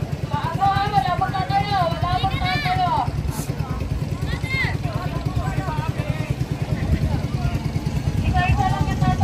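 A group of young people and adults talk and call out excitedly outdoors.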